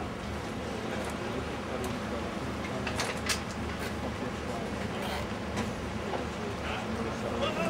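Tools clink and clank against metal.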